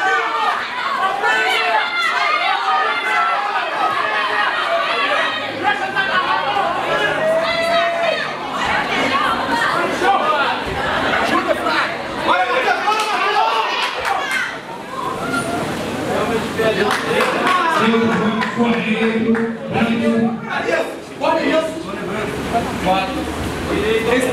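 A crowd shouts and cheers loudly.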